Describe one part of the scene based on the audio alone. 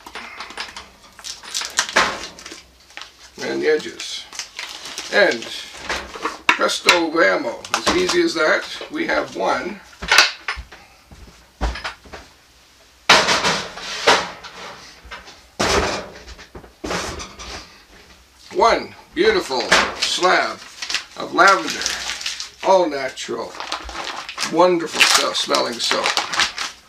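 Plastic and metal mould parts knock and clatter.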